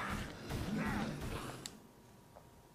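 Zombies groan in a video game fight.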